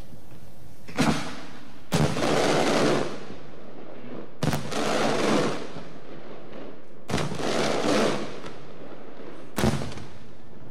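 Fireworks boom loudly in the open air, one after another.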